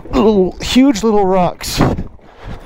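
A man speaks with animation through a helmet microphone.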